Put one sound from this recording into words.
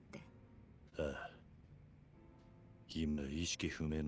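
A man answers in a low, calm voice.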